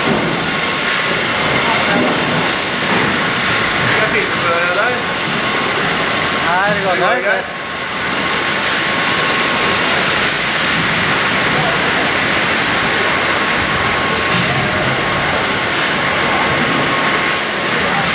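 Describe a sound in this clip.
Machinery hums and rattles steadily in a noisy room.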